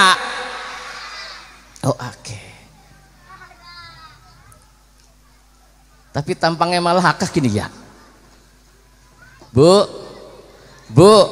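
A man sings and chants into a microphone, heard through loudspeakers in an echoing open space.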